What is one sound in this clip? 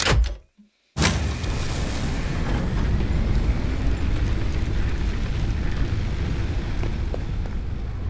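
A steady machine rumble drones on.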